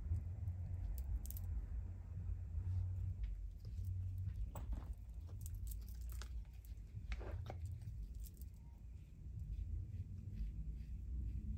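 A comb scrapes softly through short hair.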